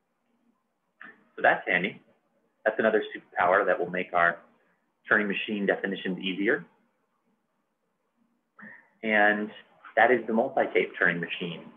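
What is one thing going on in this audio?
A man speaks calmly and clearly into a close microphone, in bursts with pauses.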